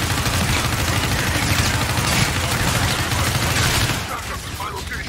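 A gun fires in rapid, loud bursts.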